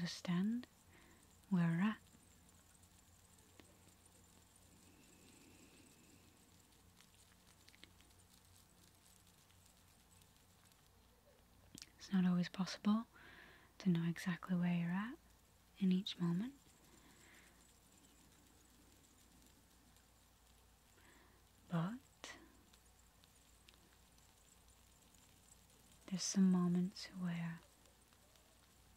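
A young woman speaks softly and slowly into a close microphone, with long pauses.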